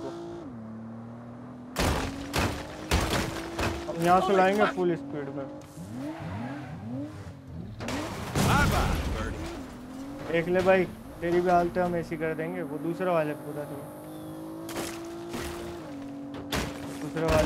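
Tyres skid and crunch over dirt.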